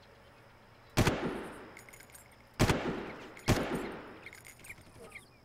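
A rifle fires single loud shots that echo and fade away.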